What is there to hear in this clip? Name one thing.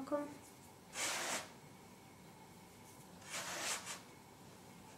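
Hands knead and rub dough on a floured board with soft brushing sounds.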